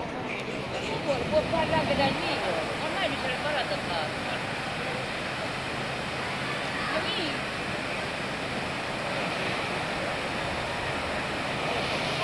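A fountain splashes and gushes steadily outdoors.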